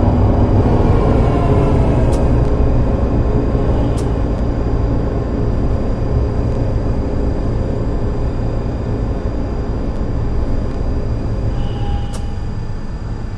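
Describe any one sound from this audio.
A tram motor hums and rumbles steadily as the tram rolls along rails.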